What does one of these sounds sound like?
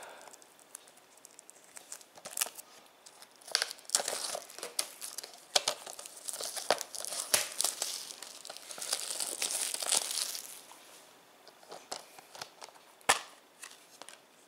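A plastic disc case clicks and taps as it is handled.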